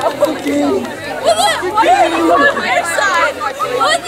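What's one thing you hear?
Young women cheer and shout excitedly.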